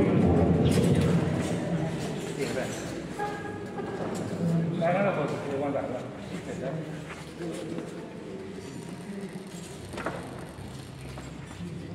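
Tambourines jingle and thump in a rhythm.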